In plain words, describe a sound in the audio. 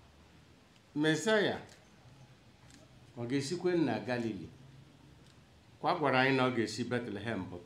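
A middle-aged man speaks slowly and solemnly into a microphone, with pauses, heard through a loudspeaker.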